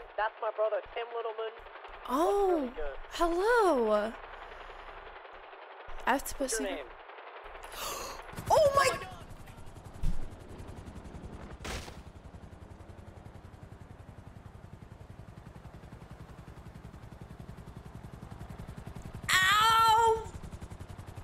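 A young woman talks and exclaims with animation close to a microphone.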